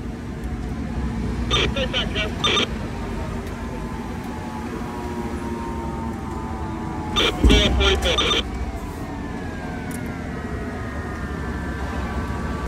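A heavy fire engine rumbles as it drives past.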